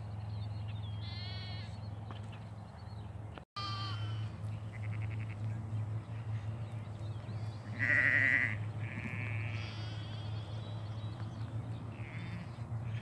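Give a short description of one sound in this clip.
Sheep and lambs bleat on and off, some near and some farther away.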